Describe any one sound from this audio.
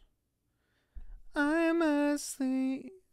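A young man sings a few notes close into a microphone.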